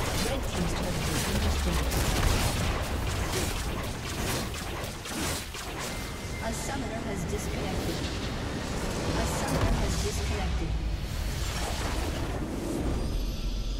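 Spells and weapons clash in a fast battle with bursts and impacts.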